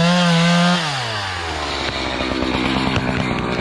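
A chainsaw engine idles with a low putter.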